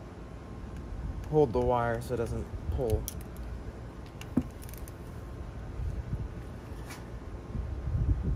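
Metal parts clink and tap against each other.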